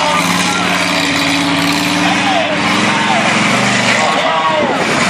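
A monster truck engine roars loudly.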